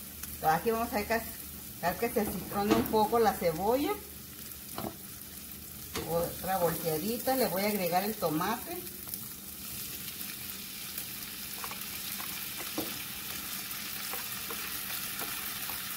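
Onions sizzle in a frying pan.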